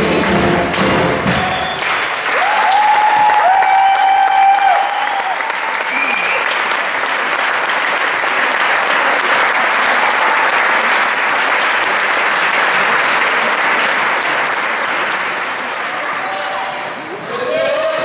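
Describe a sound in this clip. A crowd claps and applauds loudly in a large echoing hall.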